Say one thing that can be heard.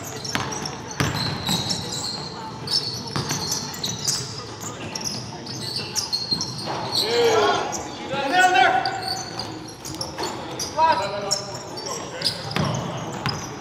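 A basketball bounces on a hardwood floor with hollow thuds.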